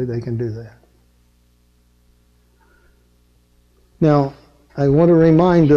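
An elderly man lectures with animation through a microphone.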